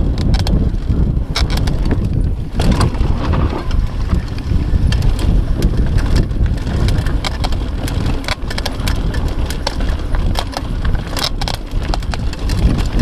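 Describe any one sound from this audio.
A bicycle frame clatters and clicks over bumps.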